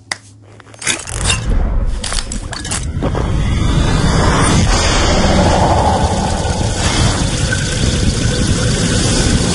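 A loud electric crackling buzzes and hisses.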